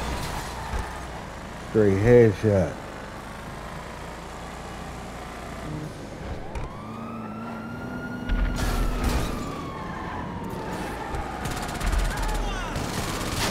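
A car engine revs steadily as the car drives.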